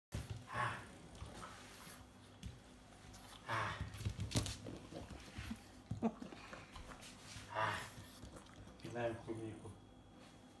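A small dog snorts and grunts.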